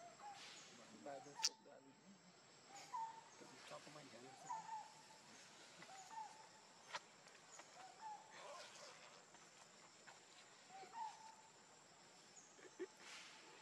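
A baby monkey suckles with soft, wet smacking sounds.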